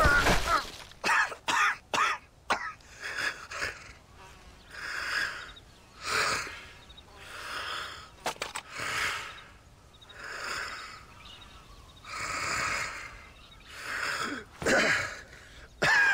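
A wounded man groans and gasps heavily.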